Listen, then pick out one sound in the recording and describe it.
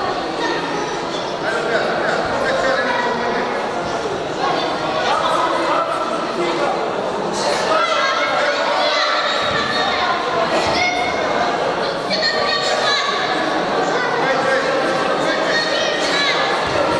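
A crowd of spectators talks and calls out in an echoing gym.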